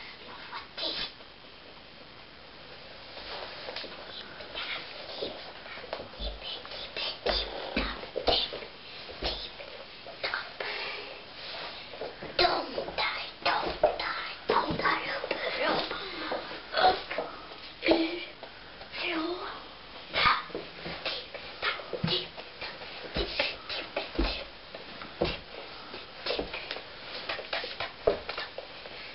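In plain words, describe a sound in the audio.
A hand rustles and handles a soft toy, with soft thumps and scrapes close by.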